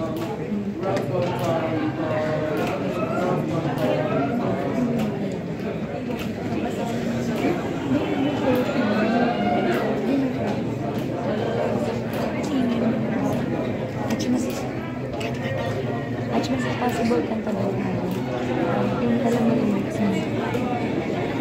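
A group of men and women sings together in a room.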